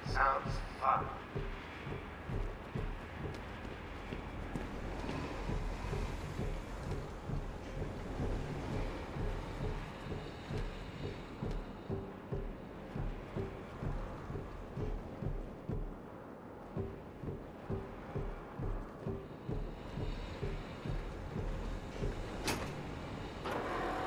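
Footsteps thud steadily on a hard metal floor.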